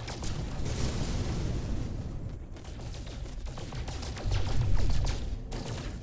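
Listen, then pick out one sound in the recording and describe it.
A spaceship engine rumbles low and steady.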